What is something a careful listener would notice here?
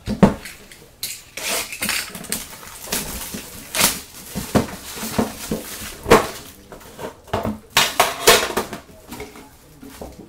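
Plastic wrapping crinkles and rustles as it is torn open.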